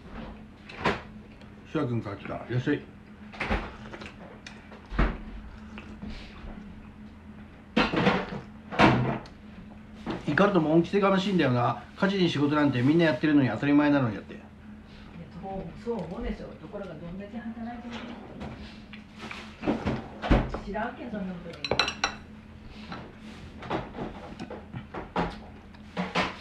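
A man chews and slurps food close by.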